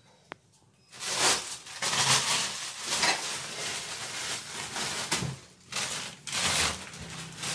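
Plastic wrappers rustle and crinkle.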